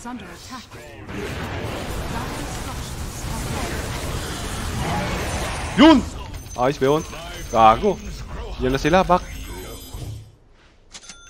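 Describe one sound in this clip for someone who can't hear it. Game sound effects of spells and clashes play.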